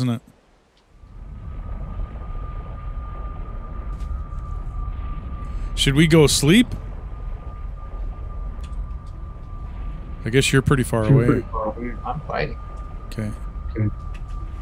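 A fiery portal roars with a low, steady rumble.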